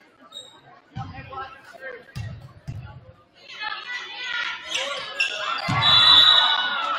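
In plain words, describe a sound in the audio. A basketball bounces on a wooden floor with dull thuds.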